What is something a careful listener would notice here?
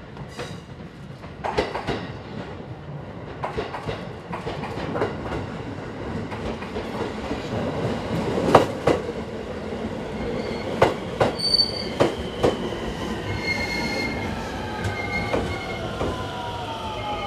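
Train wheels clatter and clank over rail joints.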